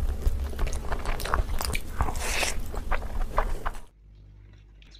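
A woman chews food loudly close up.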